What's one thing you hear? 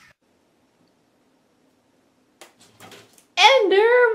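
A cat lands with a thump on a floor.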